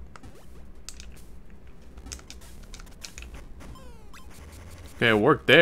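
Short electronic blips sound as a game character jumps and climbs.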